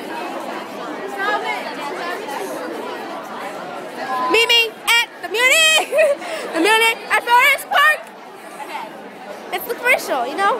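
A young woman laughs and talks loudly close by.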